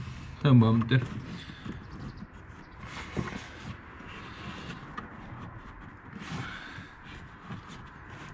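Plastic panels creak and rattle as hands pull at them.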